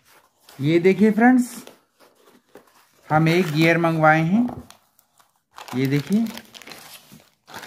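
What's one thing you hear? Cardboard flaps rustle and scrape as a small box is opened.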